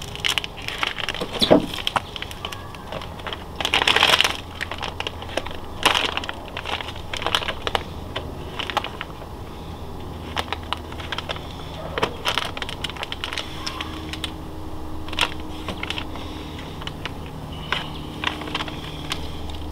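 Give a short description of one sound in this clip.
Vinyl crackles as it is peeled off a panel.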